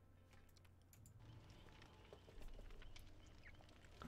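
A young man speaks quietly close to a microphone.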